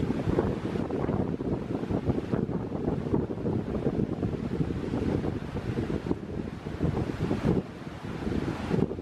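Wind buffets outdoors in gusts.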